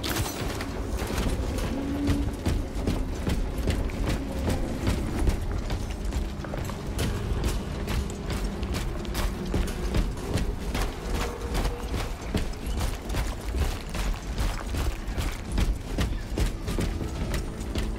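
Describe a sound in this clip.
Heavy armoured footsteps thud steadily on soft ground.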